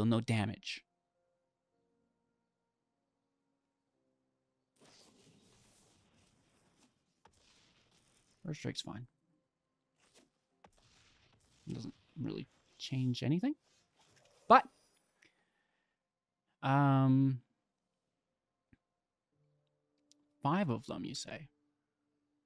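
A young man speaks in short bursts, close to a microphone.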